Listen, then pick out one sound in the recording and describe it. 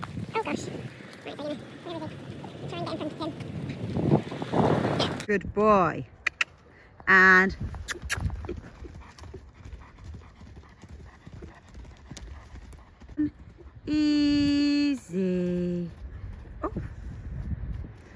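A pony's hooves thud and crunch on gravel as it trots.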